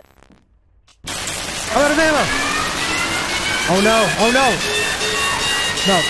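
Loud crackling static hisses.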